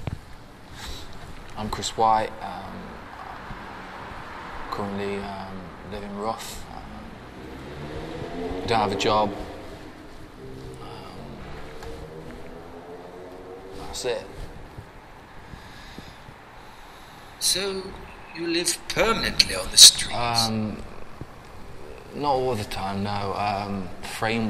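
A young man speaks calmly and thoughtfully, close by.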